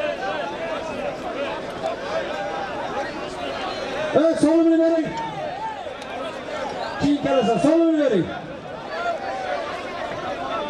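A large crowd of men shouts and chatters outdoors.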